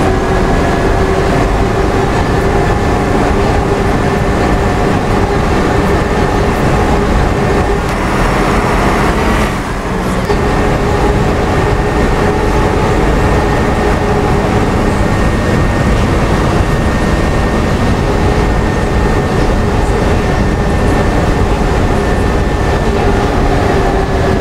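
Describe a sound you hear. Rain patters on a bus windscreen.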